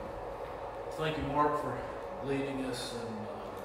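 A man speaks calmly into a microphone in an echoing room.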